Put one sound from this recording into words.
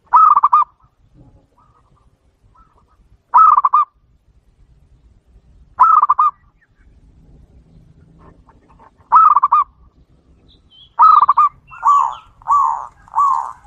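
A dove coos in short rapid trilling bursts, close by.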